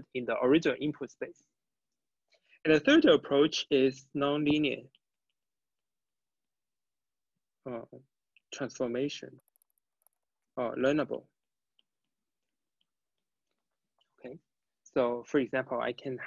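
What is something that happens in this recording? A young man speaks calmly through a microphone, in short phrases with pauses.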